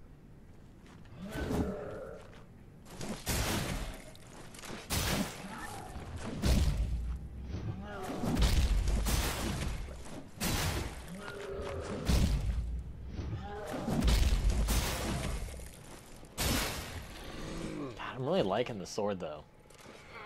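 Blades swing and whoosh through the air.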